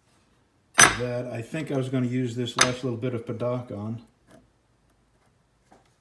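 A wooden block is set down on a thin metal sheet with a light knock.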